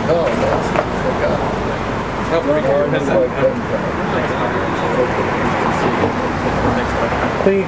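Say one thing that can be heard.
A younger man talks and laughs, close by.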